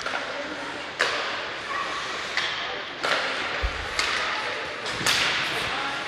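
Hockey sticks smack a puck with sharp clacks.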